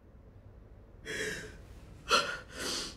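A woman gasps and sobs in short, sharp breaths.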